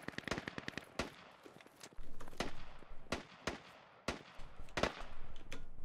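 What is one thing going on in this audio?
Single gunshots crack at uneven intervals.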